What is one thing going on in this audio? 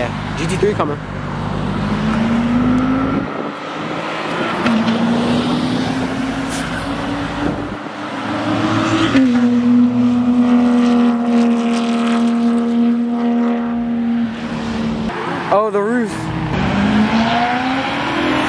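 A sports car engine revs and rises in pitch.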